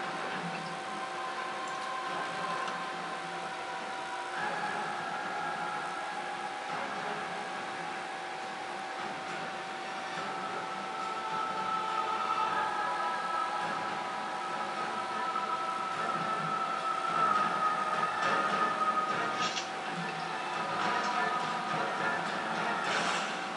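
Calm music plays with long, held tones.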